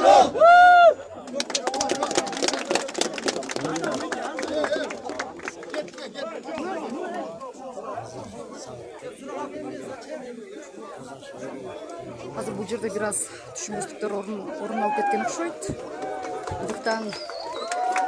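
A crowd of men talk and clamour all around.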